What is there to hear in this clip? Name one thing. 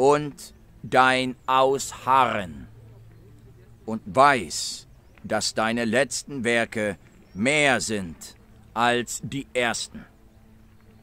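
A man speaks calmly and closely into a phone microphone, in bursts with pauses.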